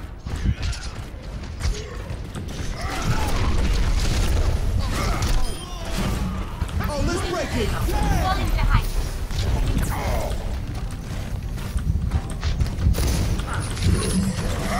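Gunfire from a video game blasts in rapid bursts.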